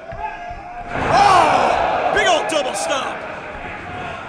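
A crowd cheers loudly in an echoing hall.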